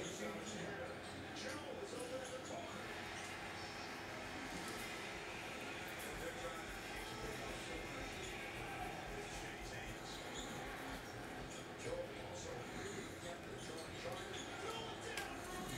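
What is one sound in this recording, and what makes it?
Trading cards slide and flick against each other as they are shuffled.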